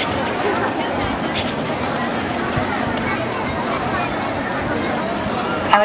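A large crowd murmurs and chatters outdoors in an echoing stone courtyard.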